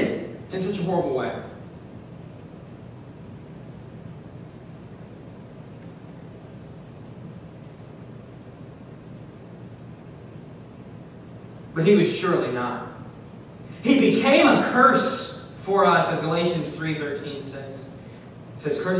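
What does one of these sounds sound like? A young man speaks calmly through a microphone, pausing at length between phrases.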